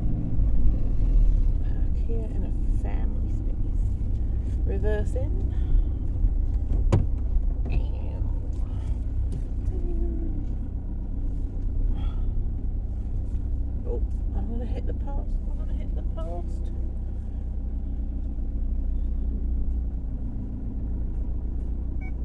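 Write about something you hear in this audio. A car's engine and tyres rumble low and steadily from inside the cabin.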